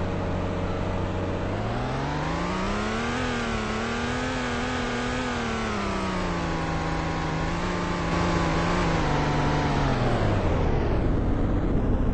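A car engine hums and revs up, then winds down as the car slows.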